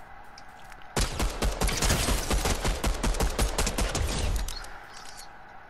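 Rapid gunshots fire in a quick burst.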